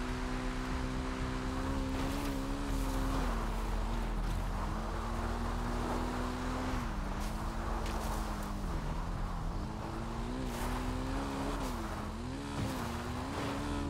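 Tyres rustle through grass and brush.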